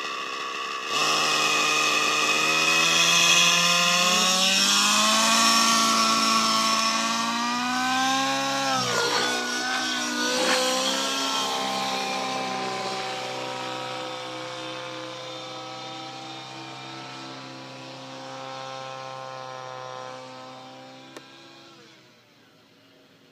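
A model helicopter's engine whines loudly as it lifts off and climbs, slowly fading into the distance.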